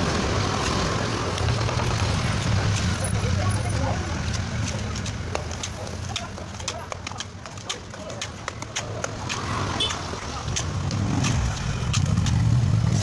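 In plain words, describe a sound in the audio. Motorbikes rumble past on a nearby street.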